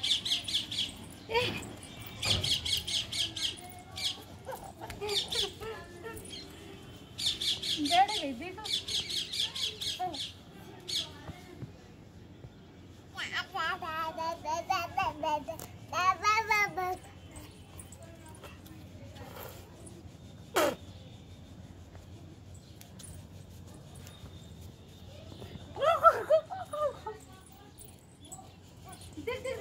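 A young woman talks and cheers encouragingly close by.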